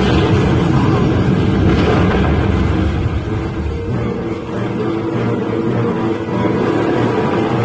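A huge explosion roars with a deep, rolling rumble.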